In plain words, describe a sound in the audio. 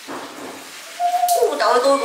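Water pours from a pot into another pot.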